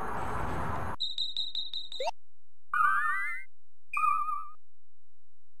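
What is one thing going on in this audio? Menu sounds chime in short rising beeps.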